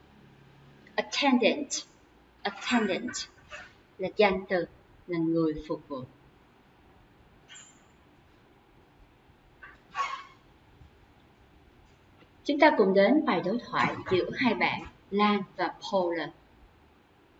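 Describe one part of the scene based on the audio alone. A young woman speaks calmly and clearly into a microphone, with pauses.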